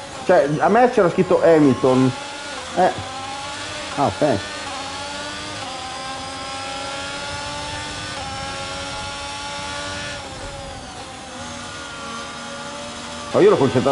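A racing car engine whines steadily, rising and falling in pitch with gear changes.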